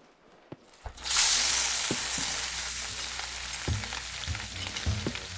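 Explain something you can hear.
Eggs sizzle loudly in hot oil.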